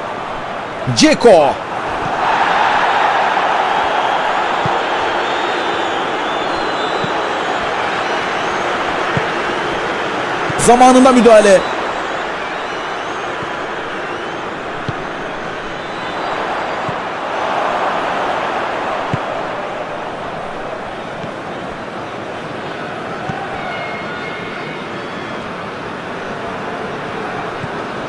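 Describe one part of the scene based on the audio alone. A football thuds as players kick it.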